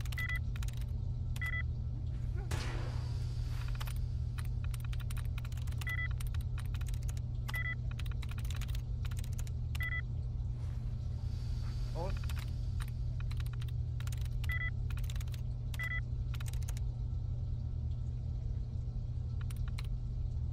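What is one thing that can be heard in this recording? Keys click rapidly on an old computer terminal.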